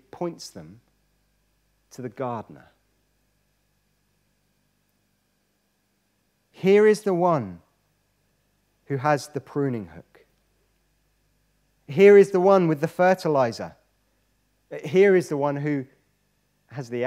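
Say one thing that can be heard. A young man speaks with animation into a microphone, pausing between phrases.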